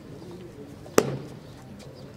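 A boot stamps sharply on the ground.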